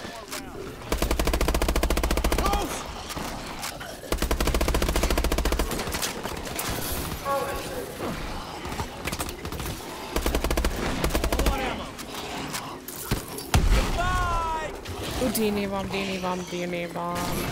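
Monsters growl and shriek nearby.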